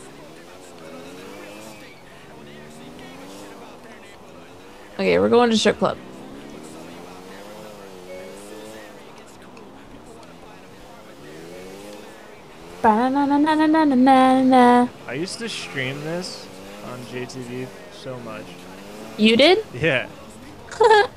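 A motorcycle engine hums and revs up and down as it rides.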